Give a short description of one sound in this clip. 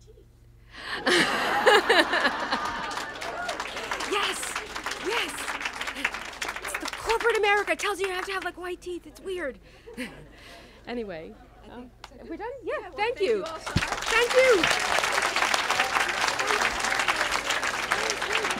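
An audience laughs together.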